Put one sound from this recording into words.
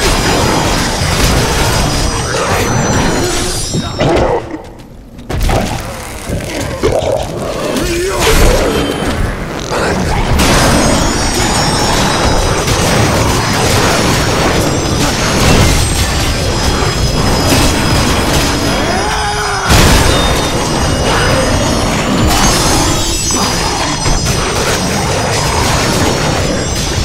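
Blades clash and slash repeatedly in a fierce game battle.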